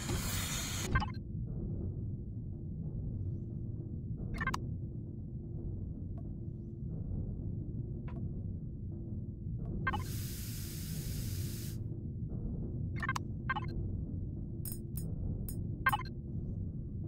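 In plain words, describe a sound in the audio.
Short electronic blips sound as menus open and close.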